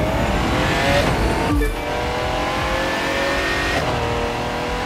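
A race car engine shifts gears with short drops in pitch.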